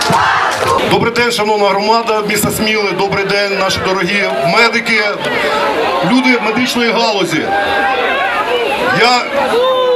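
A middle-aged man speaks forcefully into a microphone, heard through loudspeakers outdoors.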